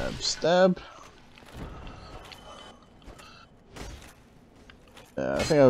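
Metal armour clanks with heavy footsteps.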